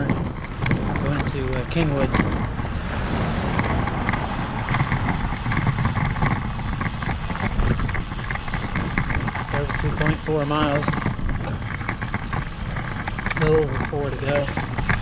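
A vehicle rolls along a paved street with a steady hum.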